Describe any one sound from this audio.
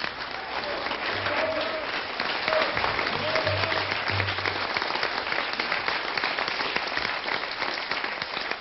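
A crowd claps and applauds steadily, close by.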